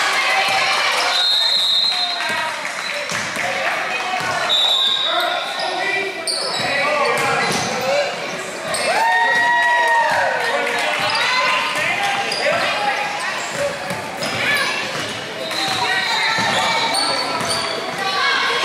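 A basketball bounces on the wooden floor.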